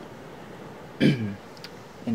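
A young man clears his throat close by.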